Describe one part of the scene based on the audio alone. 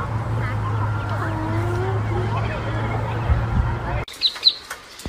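Ducklings peep softly on the water.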